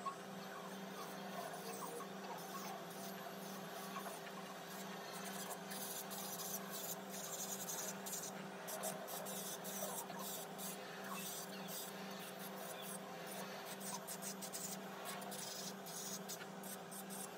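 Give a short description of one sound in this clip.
A nail drill bit grinds against a nail.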